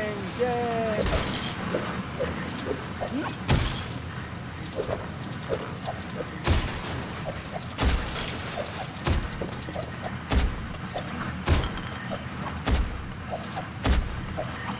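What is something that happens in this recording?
Heavy thuds land at a steady pace.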